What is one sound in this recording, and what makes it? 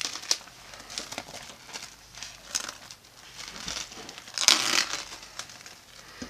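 Plastic wrap crinkles as it is peeled back.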